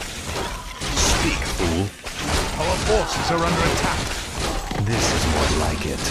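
Fantasy battle sound effects clash and crackle as spells are cast.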